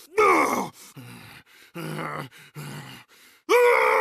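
A deep-voiced man grunts and yells with strain.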